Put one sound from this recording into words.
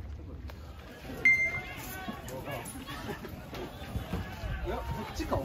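Young men chat and call out nearby.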